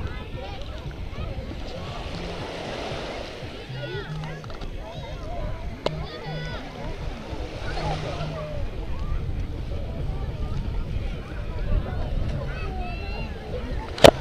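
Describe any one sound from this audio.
Many people chatter and children shout on a busy beach outdoors.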